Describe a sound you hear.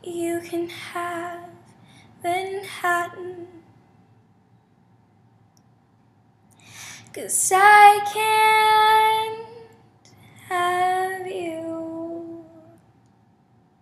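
A young woman speaks with animation close to a microphone, in short bursts with pauses.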